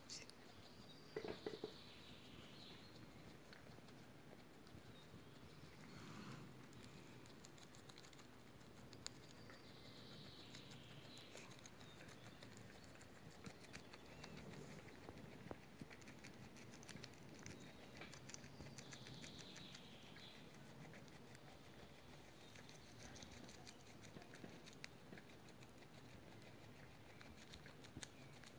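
A guinea pig munches and crunches on a leaf close by.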